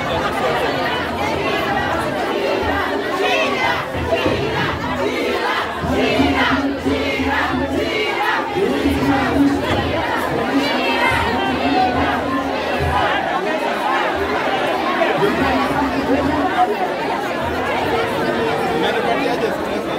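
A large crowd talks and shouts outdoors.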